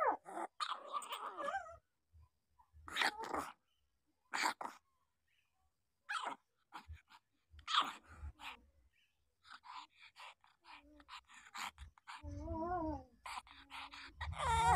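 Puppies whimper and squeal close by.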